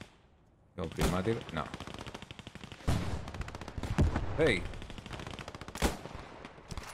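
Loud gunshots boom one at a time.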